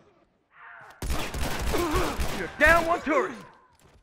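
Gunshots crack in a quick burst close by.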